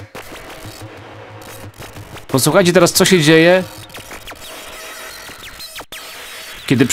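A modular synthesizer plays warbling, glitchy electronic tones that shift as knobs are turned.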